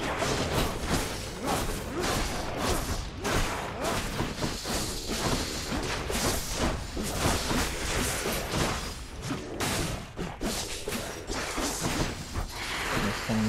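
Rapid magical attacks crackle and thud in quick bursts.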